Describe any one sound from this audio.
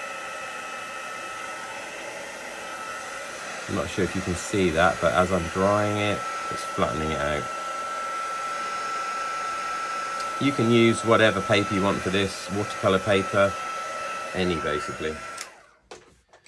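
A heat gun blows with a steady whirring hum, then switches off.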